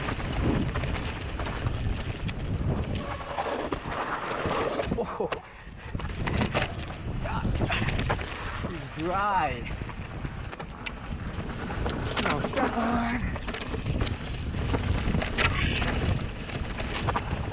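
Bike tyres crunch and rattle over a dirt trail.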